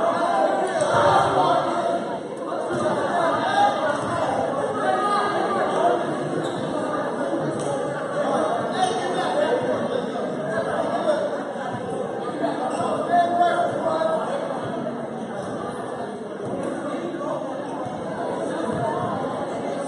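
Spectators chatter nearby, echoing in a large hall.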